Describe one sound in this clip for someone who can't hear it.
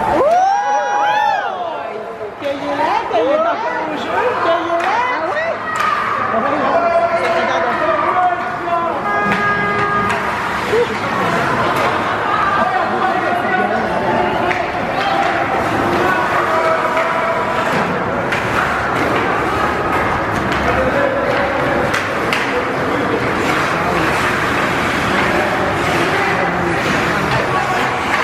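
A crowd of spectators cheers and shouts in an echoing rink.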